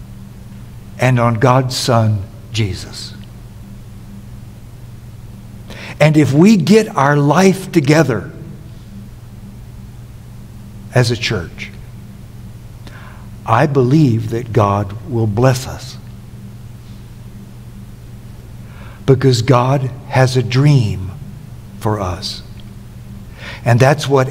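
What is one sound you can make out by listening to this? An older man speaks slowly and deliberately through a microphone, with long pauses.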